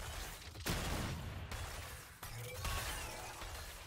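Game spell effects zap and whoosh.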